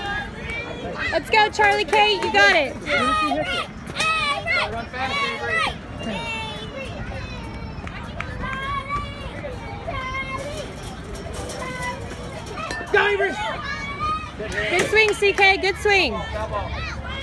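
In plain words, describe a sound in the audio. Young girls scream excitedly nearby.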